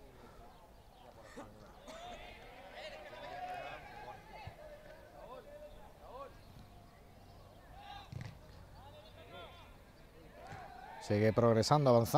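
Football players shout to each other in the distance, outdoors.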